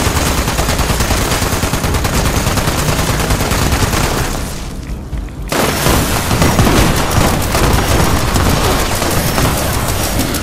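A heavy automatic gun fires in rapid bursts.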